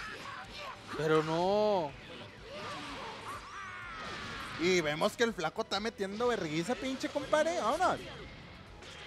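Punches and energy blasts crash and boom in a video game fight.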